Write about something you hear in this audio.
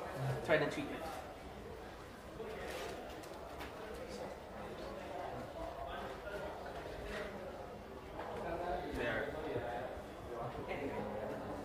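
Several people murmur and chatter in the background.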